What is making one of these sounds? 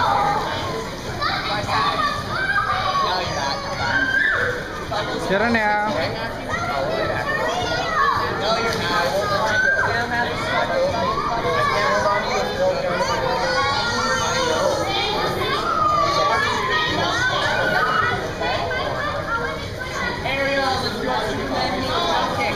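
Water splashes as a child is pulled through the water.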